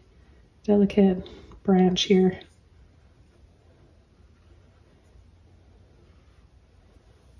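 A paintbrush dabs and scrapes softly on canvas.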